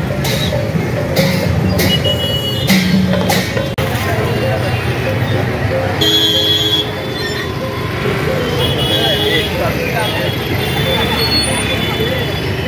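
Motorbike engines hum as they ride past.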